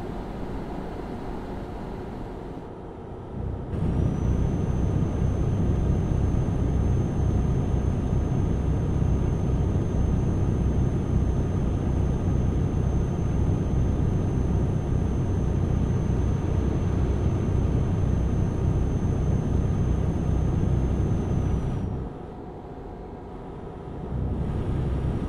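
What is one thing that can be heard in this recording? A truck engine rumbles steadily, growing louder, then quieter again.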